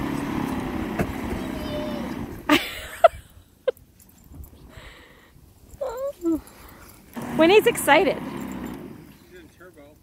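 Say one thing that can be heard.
An electric snow blower whirs as it throws snow.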